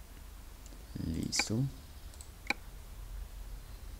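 A menu button clicks once.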